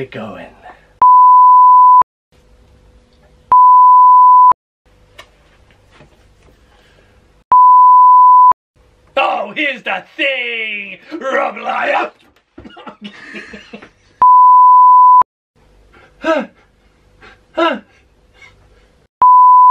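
A steady high test tone beeps in short bursts.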